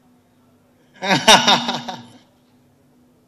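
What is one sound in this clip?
A group of men laugh loudly nearby.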